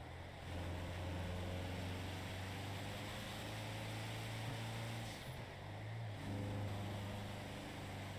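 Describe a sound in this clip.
A van's engine hums steadily as it drives, rising and falling in pitch with gear changes.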